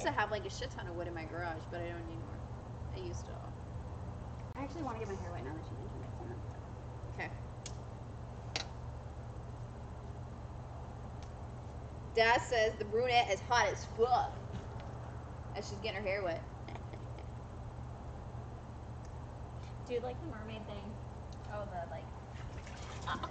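Young women talk and laugh together nearby.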